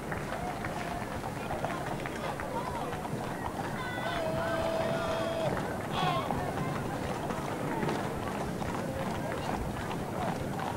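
A large crowd cheers and calls out outdoors.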